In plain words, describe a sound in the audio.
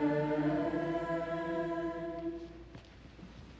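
A man sings a short sustained chant.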